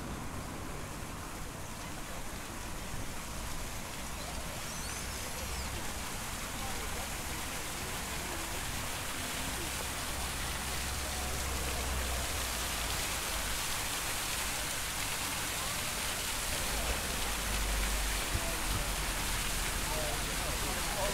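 People chatter at a distance outdoors.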